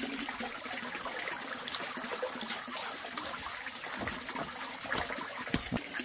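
Water pours from a pipe into a plastic basin.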